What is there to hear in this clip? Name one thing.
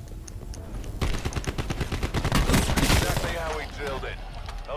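Rapid automatic gunfire rattles close by.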